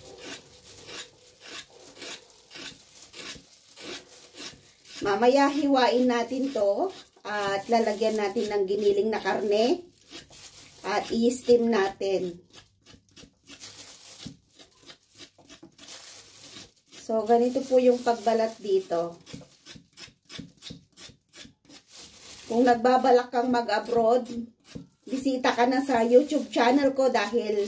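A peeler scrapes the skin off a cucumber with short rasping strokes.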